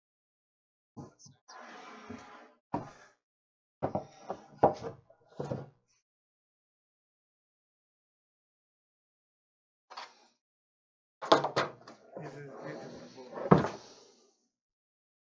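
Wooden boards knock and clatter as they are handled.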